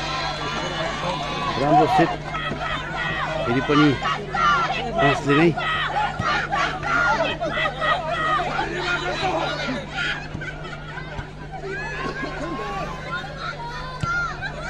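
A large outdoor crowd of spectators cheers and shouts, rising loud in bursts.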